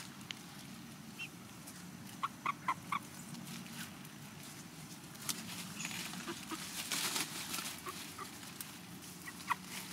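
Chickens cluck softly.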